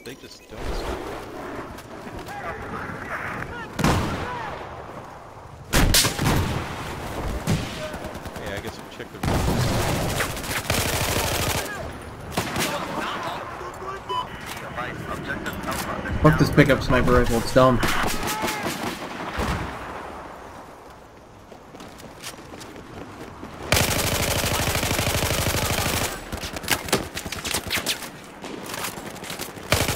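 Rifle shots ring out in sharp bursts.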